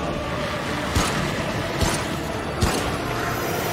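A gun fires sharp single shots.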